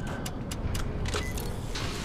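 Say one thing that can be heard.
A switch clicks on a metal box.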